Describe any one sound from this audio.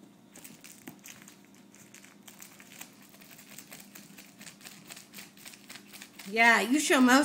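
A cat chews and licks at a toy with soft, rapid clicking sounds.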